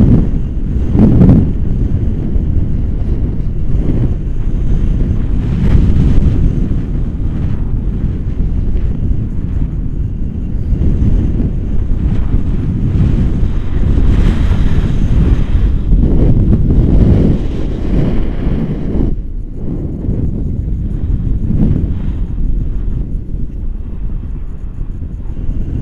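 Strong wind rushes and buffets loudly against a microphone outdoors.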